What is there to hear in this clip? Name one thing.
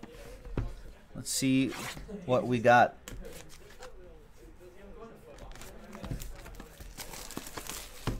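Plastic wrap crinkles as hands handle a box.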